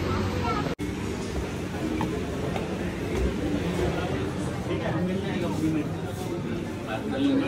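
A child's footsteps tap on a hard floor.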